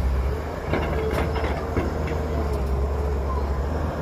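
Dirt pours from an excavator bucket into a truck bed.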